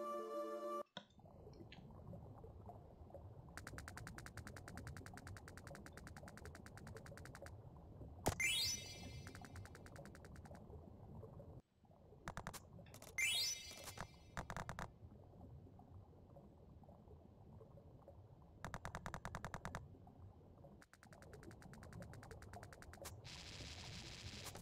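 A low rumbling cave ambience plays throughout.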